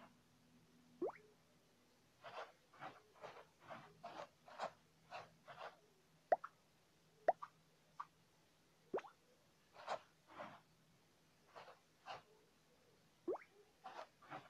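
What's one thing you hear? Short rising swoosh sounds play from a game as crayons are picked.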